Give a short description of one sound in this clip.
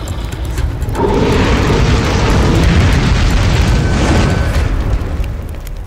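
Fire bursts out with a deep whoosh and roar.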